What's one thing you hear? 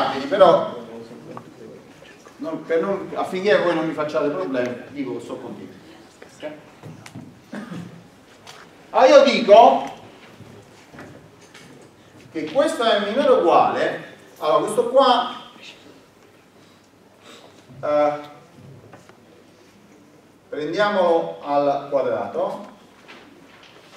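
A man lectures aloud, speaking in bursts with pauses.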